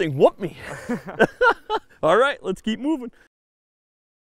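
A man speaks close by with animation.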